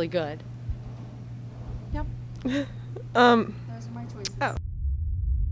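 A young woman speaks into a microphone, close by.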